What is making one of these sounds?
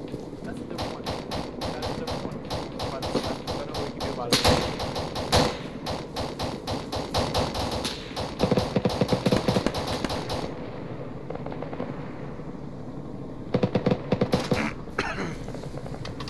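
Rifles fire in rapid bursts nearby.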